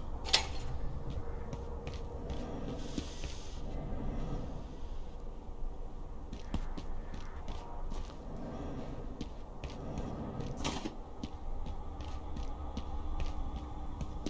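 Footsteps tread steadily on stone paving.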